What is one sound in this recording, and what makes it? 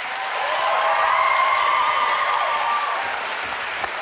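Young girls shriek with excitement.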